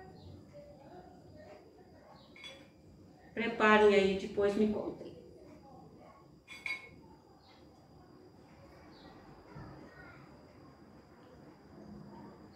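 A knife scrapes and taps on a plate.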